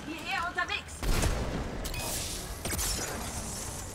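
A rifle fires with a loud, booming crack.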